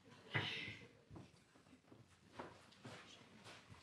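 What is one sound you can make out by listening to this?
Wet cloth splashes and rustles in a wooden tub.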